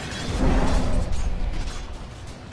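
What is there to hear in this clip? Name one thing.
Magic blasts thud and crackle in a fast game fight.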